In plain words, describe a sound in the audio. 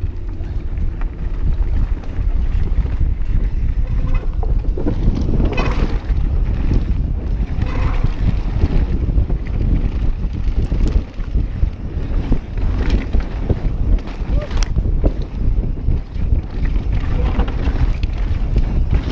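A mountain bike's frame and chain clatter over bumps.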